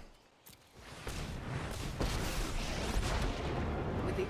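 A magical burst crackles and shimmers.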